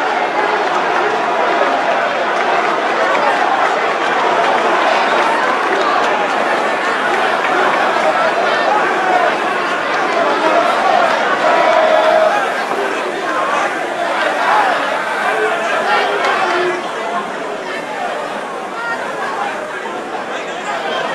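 Young men call out answers quickly through microphones.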